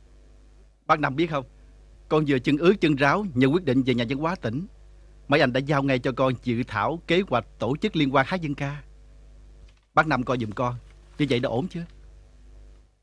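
A young man speaks with animation up close.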